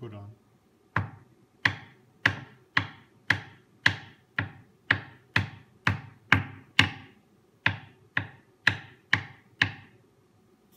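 Sharp knocks strike a hard surface at an even pace, each ringing out briefly.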